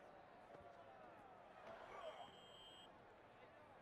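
Football players collide in a hard tackle.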